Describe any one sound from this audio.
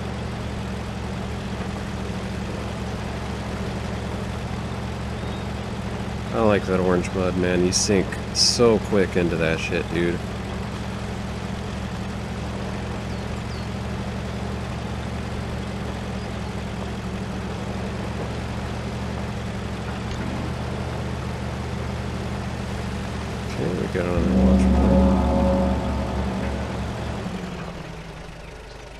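A vehicle engine hums steadily, then revs louder before fading.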